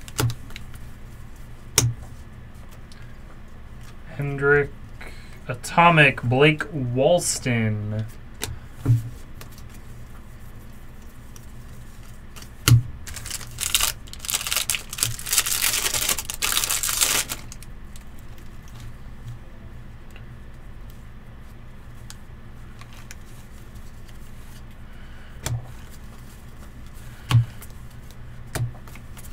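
Trading cards shuffle and flick between hands.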